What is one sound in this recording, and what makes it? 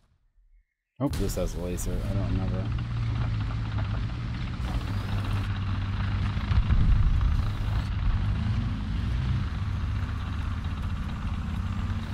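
A tank engine rumbles and whines steadily.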